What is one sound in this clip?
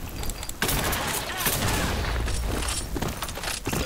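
A sniper rifle fires a loud, sharp shot.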